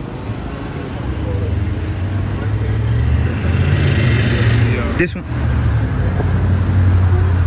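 Traffic rumbles past on a nearby street.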